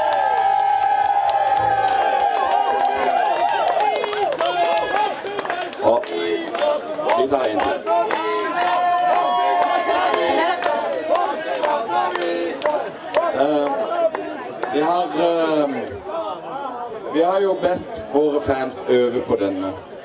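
A band plays upbeat music through loudspeakers.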